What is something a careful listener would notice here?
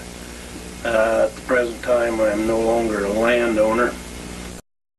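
An older man speaks calmly and close by.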